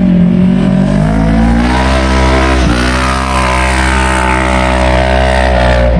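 A utility vehicle's engine strains loudly, rising in pitch as it climbs a steep slope.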